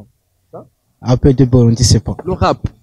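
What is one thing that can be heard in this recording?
A young man answers with animation into a microphone close up.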